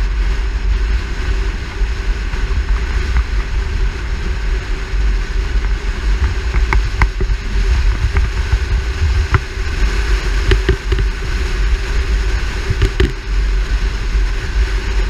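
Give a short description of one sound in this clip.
Wind buffets loudly against the car at speed.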